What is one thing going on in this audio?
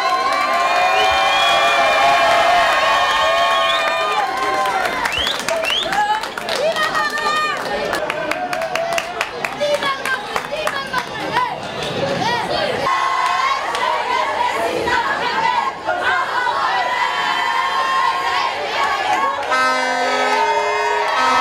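A crowd of men and women cheers and chants loudly.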